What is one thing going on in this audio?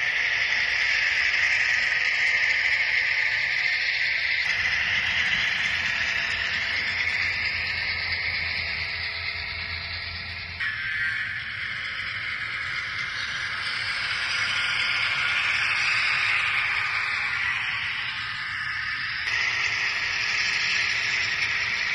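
A small model train rolls along its track with a faint electric whir.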